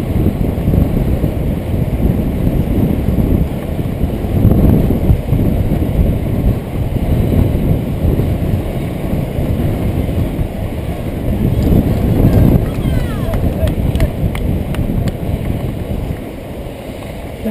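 Wind buffets a microphone at speed.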